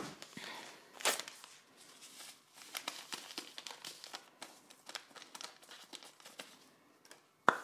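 Something crumbles and rustles lightly by hand.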